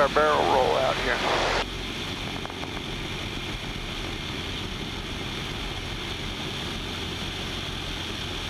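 A small propeller plane's engine drones steadily.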